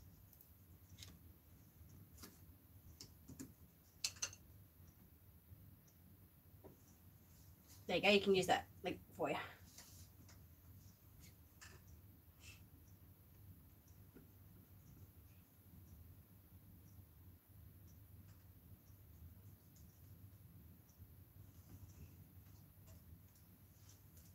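Small tools and brushes click and tap on a table.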